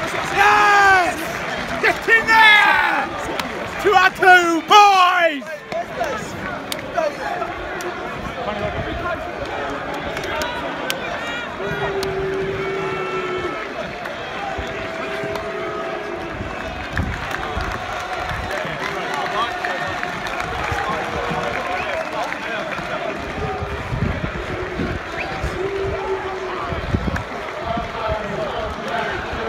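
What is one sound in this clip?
A crowd of men chatters and calls out in a large open space outdoors.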